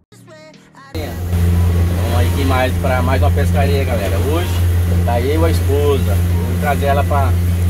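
An adult man talks close to the microphone.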